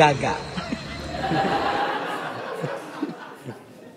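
A woman laughs.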